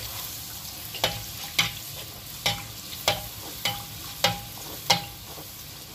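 A metal slotted spoon taps and scrapes against a metal pan.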